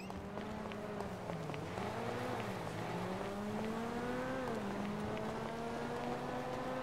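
A garage door hums open with a motor.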